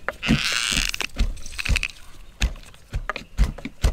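Juice drips into a bowl as a lime is squeezed.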